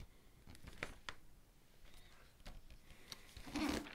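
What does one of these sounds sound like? A cardboard box taps down on a soft pad.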